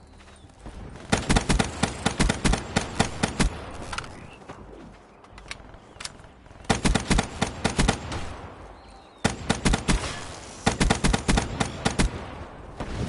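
Rapid automatic gunfire rattles in short bursts.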